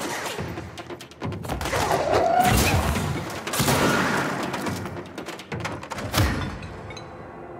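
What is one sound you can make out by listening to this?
Loud blasts and crashes of debris burst in quick succession.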